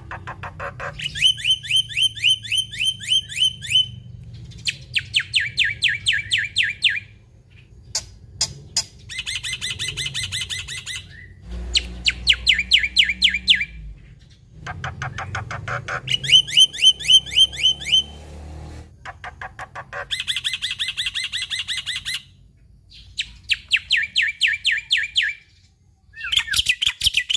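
A caged bird sings loud, rapid repeated chirping trills in bursts.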